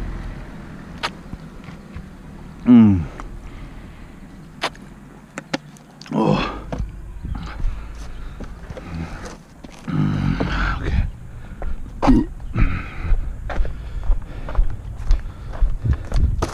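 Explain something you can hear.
Footsteps thud down outdoor stone steps and onto a road.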